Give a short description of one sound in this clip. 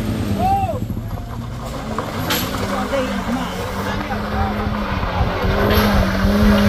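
A car engine hums as the car rolls over a rough road.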